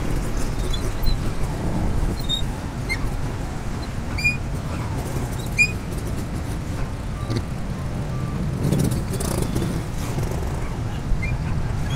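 Other motorcycles idle and rev nearby in traffic.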